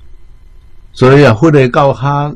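An elderly man speaks calmly into a clip-on microphone.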